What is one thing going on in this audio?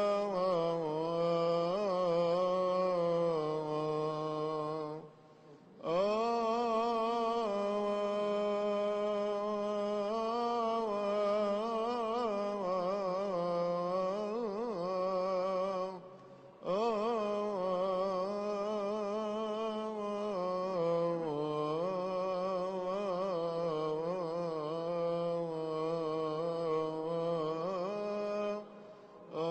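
Elderly men chant together in low voices through a microphone, in a large echoing hall.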